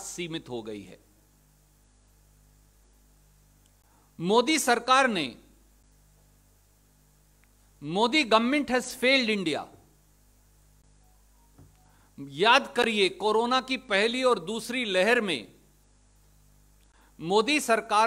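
A man speaks with animation into a microphone, in short bursts with pauses.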